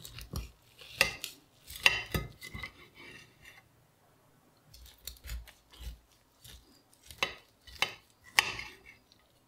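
A knife blade taps and scrapes against a plate.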